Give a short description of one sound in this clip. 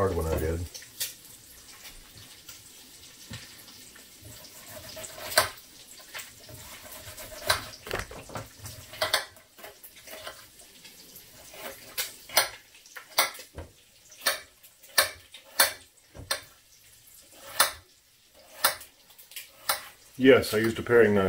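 A knife chops on a cutting board in quick, sharp knocks.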